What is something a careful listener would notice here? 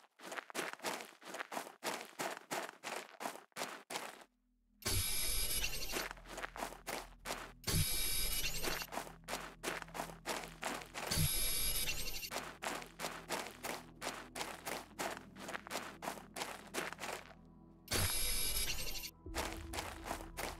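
Footsteps crunch quickly and evenly on sand.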